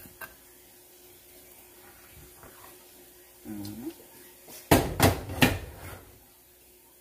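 A spatula scrapes and clinks against a metal pot.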